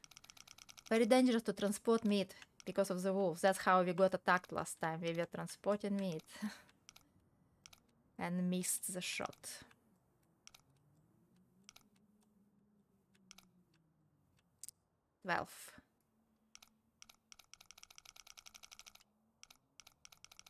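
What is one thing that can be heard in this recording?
A combination dial clicks softly as it turns.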